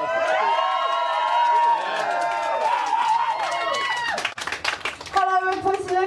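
A person claps hands.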